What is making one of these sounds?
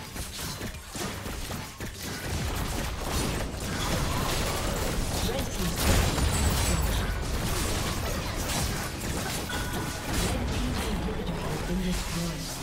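Magic blasts and hits crash and whoosh in a busy video game battle.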